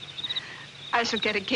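A woman speaks softly up close.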